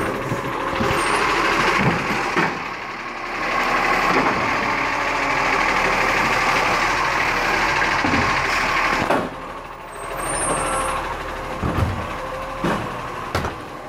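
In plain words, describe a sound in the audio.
A garbage truck engine rumbles and whines close by.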